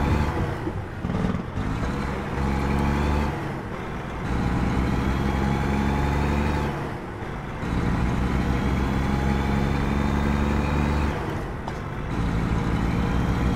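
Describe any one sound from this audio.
A heavy truck engine drones steadily, easing off and picking up again every few seconds.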